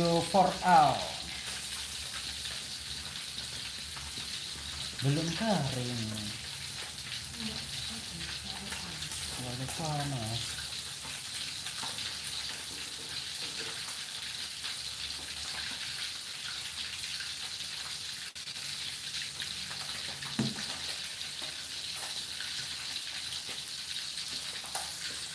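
Food sizzles steadily in hot oil.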